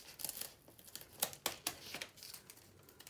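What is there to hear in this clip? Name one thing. Scissors snip through paper.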